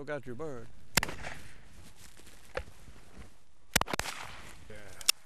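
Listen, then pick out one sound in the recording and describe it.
Gunshots crack loudly outdoors.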